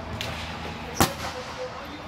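A volleyball is hit with a sharp slap in a large echoing hall.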